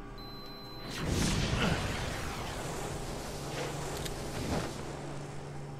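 A loud blast roars and rumbles away.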